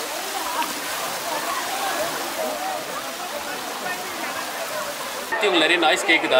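Many people talk and shout in the distance.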